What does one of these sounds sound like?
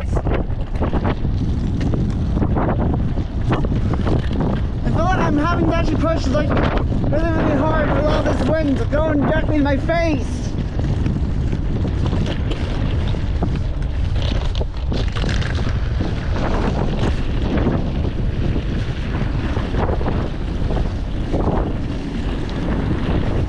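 Suitcase wheels roll and rumble over rough pavement.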